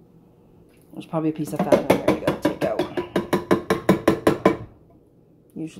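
Food glugs and plops out of a can into a pan.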